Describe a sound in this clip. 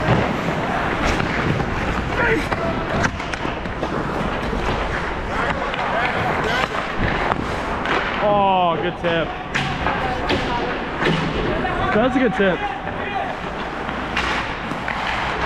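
Sticks clack against a puck and the ice.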